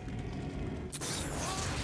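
A rocket explodes with a boom.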